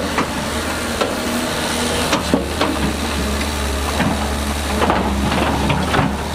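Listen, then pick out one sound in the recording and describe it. Rocks and dirt rumble and clatter as they slide out of a dump truck.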